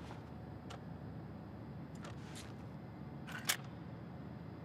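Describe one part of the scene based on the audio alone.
Metal parts click and clack as a weapon is handled.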